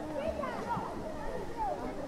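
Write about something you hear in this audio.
Water splashes as a swimmer jumps into a pool.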